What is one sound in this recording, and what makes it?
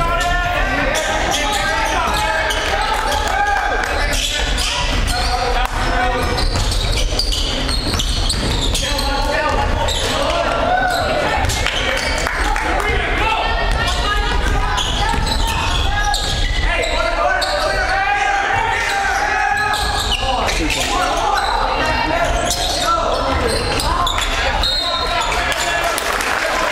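A crowd of spectators chatters and calls out in an echoing gym.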